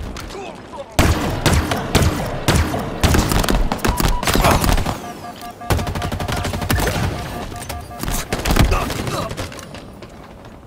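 Guns fire in rapid, loud bursts with sharp electric crackling.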